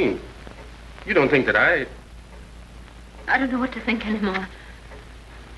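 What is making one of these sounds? A woman speaks with feeling.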